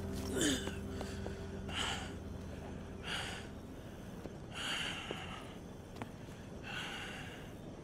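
Boots crunch on gravel as a man walks.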